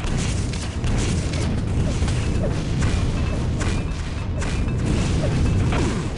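Rockets fire and explode in rapid bursts.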